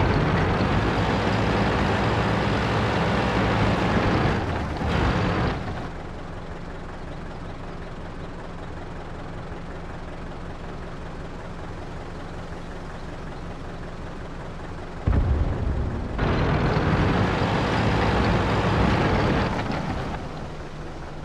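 A heavy tank engine roars loudly as the tank drives.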